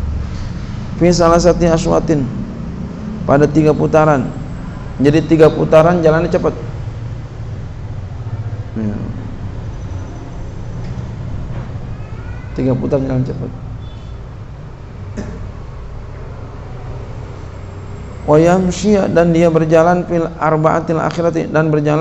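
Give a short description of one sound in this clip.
A man speaks into a microphone in a slow, chanting reading voice, heard through a loudspeaker in an echoing room.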